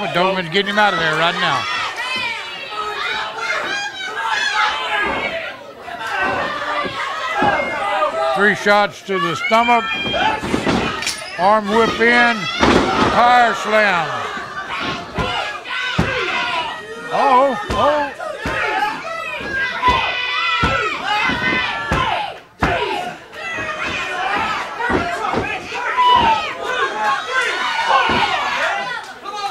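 A crowd cheers and shouts in an echoing hall.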